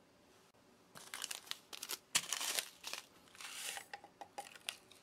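A paper sachet rustles and tears.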